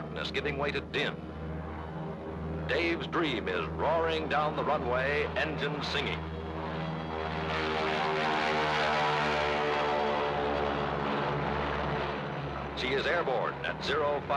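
Propeller engines of a large plane roar as it takes off, loudest as it passes close by.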